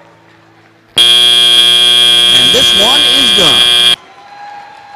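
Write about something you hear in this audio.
A loud horn blares steadily in a large echoing hall.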